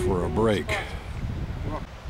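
A man speaks outdoors.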